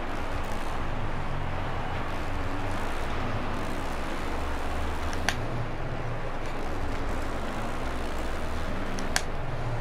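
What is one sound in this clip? A motorcycle engine revs and roars steadily.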